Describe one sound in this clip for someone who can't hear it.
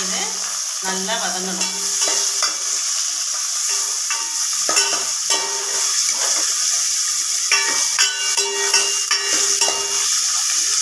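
A metal spoon scrapes and clinks against a steel pot.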